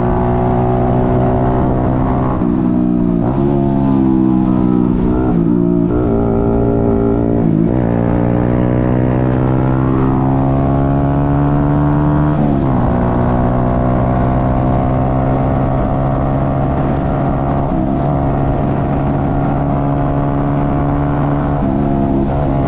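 A motorcycle engine drones steadily, its pitch rising and falling as the rider shifts gears.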